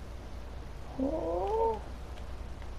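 A horse neighs loudly.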